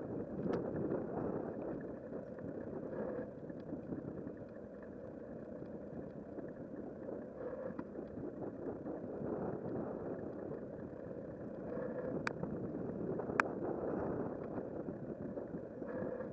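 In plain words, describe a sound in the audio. Wind buffets past a moving bicycle outdoors.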